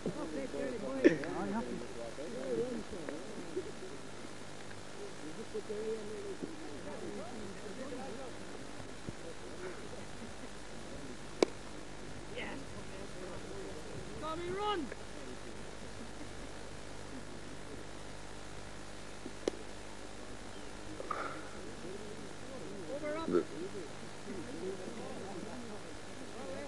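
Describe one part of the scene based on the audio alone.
Men talk and call out at a distance outdoors.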